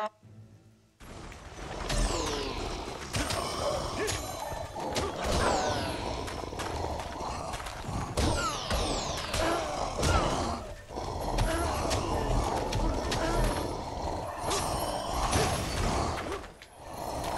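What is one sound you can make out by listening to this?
Metal blades clash and slash in rapid, sharp blows.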